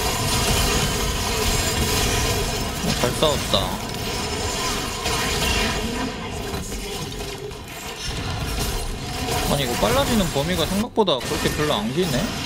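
Fantasy battle sound effects clash and whoosh.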